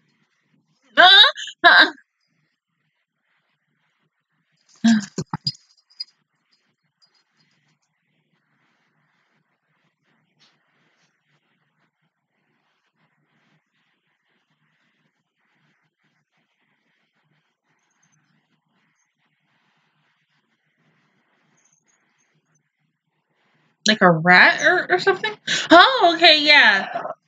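A young woman sings loudly in short bursts close by.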